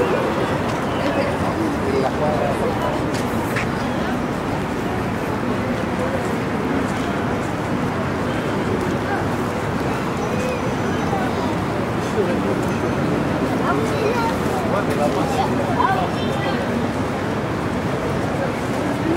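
Traffic hums steadily nearby.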